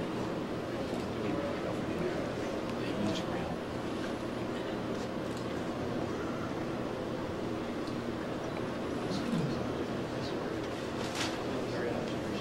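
A shutter clicks now and then.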